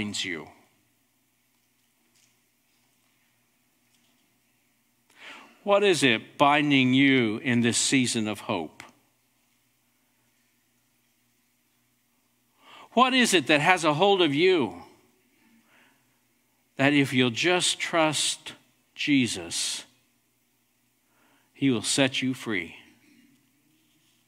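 A middle-aged man speaks slowly and earnestly through a microphone, with pauses between phrases.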